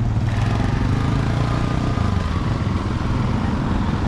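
Motor scooters drive by.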